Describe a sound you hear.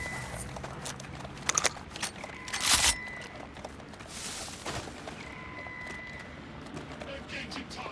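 Footsteps run on pavement.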